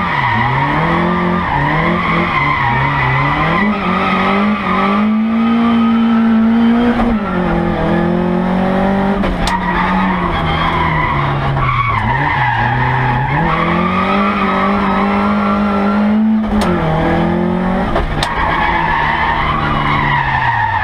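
A co-driver reads out pace notes rapidly.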